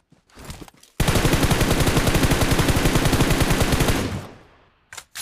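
A rifle fires in a rapid burst of loud shots.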